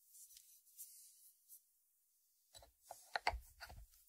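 A ceramic lid clinks as it is set back on its dish.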